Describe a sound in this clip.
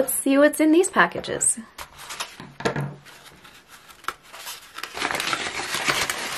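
Stiff paper wrapping rustles and crackles.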